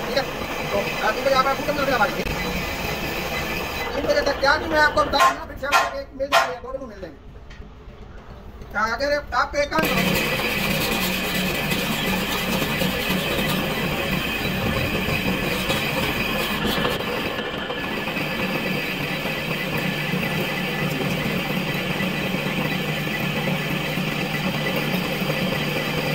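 A metal lathe runs.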